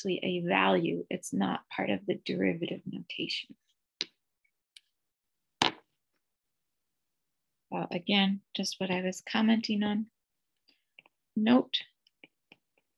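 A young woman explains calmly, heard through a microphone, with pauses.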